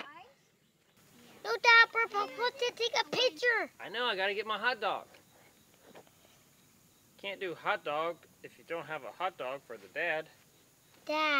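A young boy talks with animation nearby.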